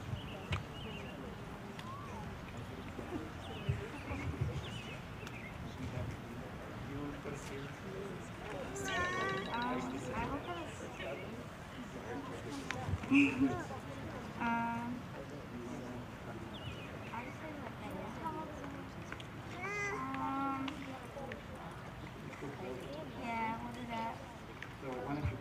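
A crowd of young people chats and murmurs outdoors.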